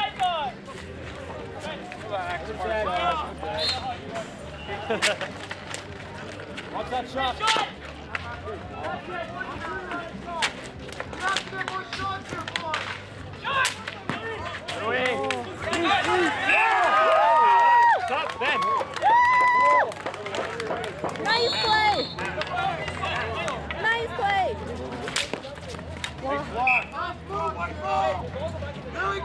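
Hockey sticks clack against a ball and each other on asphalt.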